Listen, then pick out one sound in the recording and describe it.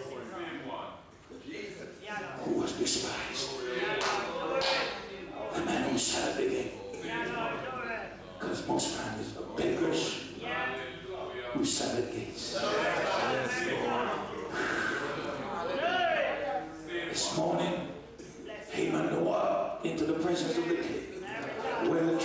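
A middle-aged man preaches with animation through a microphone in an echoing hall.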